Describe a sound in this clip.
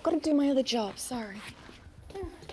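A woman speaks emotionally close by.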